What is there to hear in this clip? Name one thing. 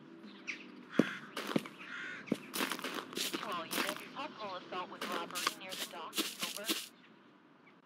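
Footsteps thud on a gritty path outdoors.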